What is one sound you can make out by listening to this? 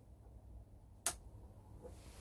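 A television switches on with a sharp click.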